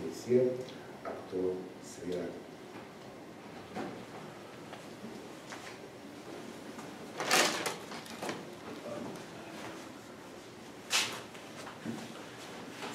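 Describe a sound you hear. A man speaks slowly and calmly, some distance away in an echoing room.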